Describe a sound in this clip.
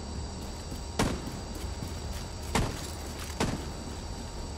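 A gun fires single loud shots.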